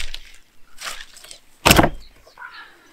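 A wooden board thuds down onto the ground.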